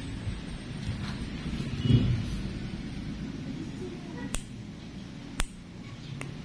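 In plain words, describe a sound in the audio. A nail clipper snips with small, sharp clicks.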